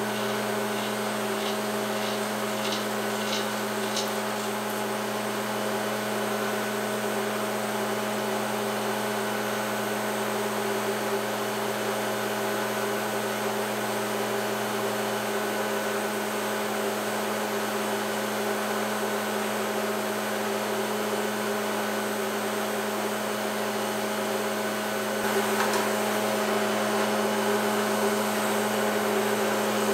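A woodworking machine hums steadily.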